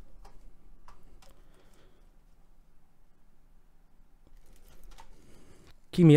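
Small plastic parts click together.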